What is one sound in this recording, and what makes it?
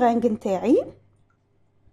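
Liquid pours and splashes into a glass bowl.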